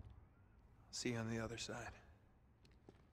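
A man speaks warmly and close by.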